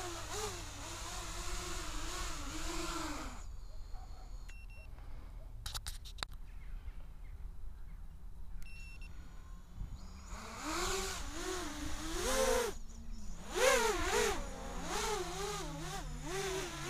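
A small drone's motors whine, rising and falling in pitch.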